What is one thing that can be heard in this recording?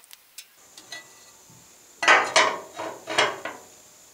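Metal plates clank against a steel frame.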